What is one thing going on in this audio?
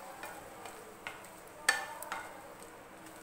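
A wooden spatula knocks against the side of a pan.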